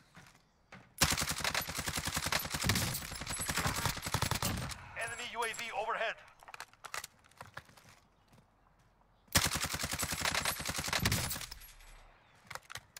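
Rapid bursts of gunfire rattle.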